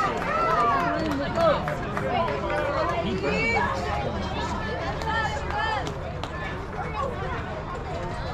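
Several adult men talk and call out outdoors, with overlapping voices nearby.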